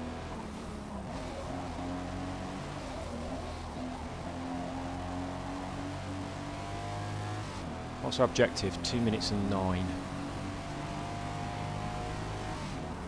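A car engine drones steadily and rises in pitch as the car speeds up.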